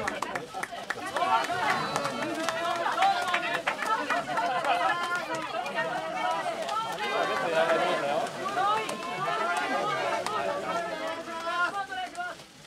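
Men talk and call out loudly.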